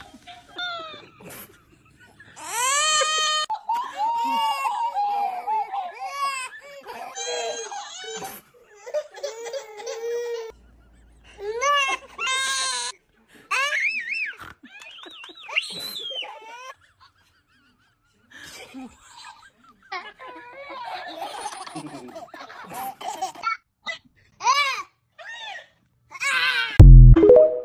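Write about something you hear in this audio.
A dancing toy sings in a high, squeaky voice.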